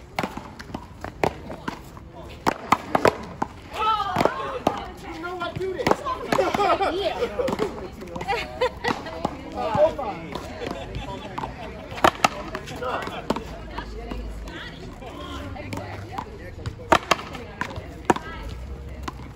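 Paddles pop as they hit a ball.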